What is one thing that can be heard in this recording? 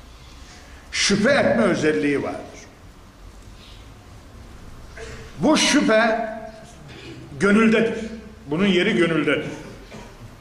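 An older man speaks with feeling into a microphone, in short bursts with pauses.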